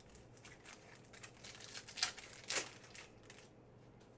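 A foil card pack crinkles and tears as hands open it.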